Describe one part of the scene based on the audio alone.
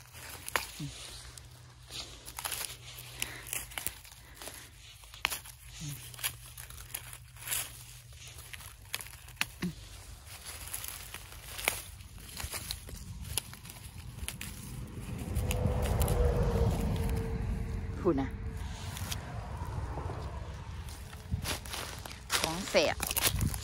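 Dry plant stalks rustle and crackle as a hand handles them.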